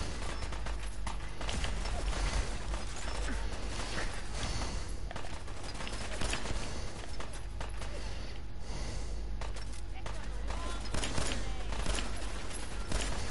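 A man shouts in pain.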